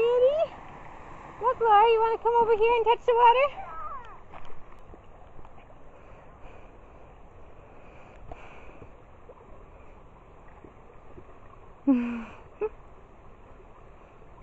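Water trickles quietly over stones.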